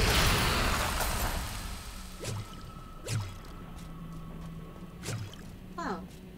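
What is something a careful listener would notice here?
Swooshing magic effects and hits sound in a game.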